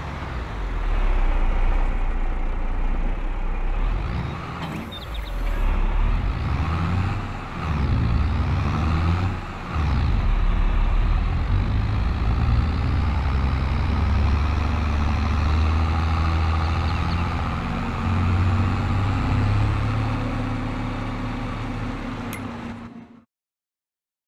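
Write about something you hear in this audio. A tractor engine rumbles loudly and revs as it drives.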